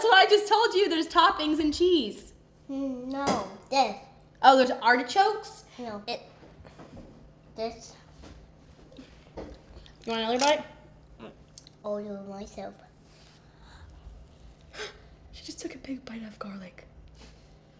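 A teenage girl talks calmly close by.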